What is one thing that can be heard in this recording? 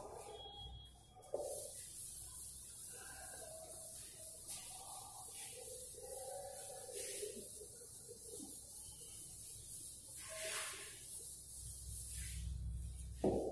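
A felt duster rubs and wipes across a chalkboard.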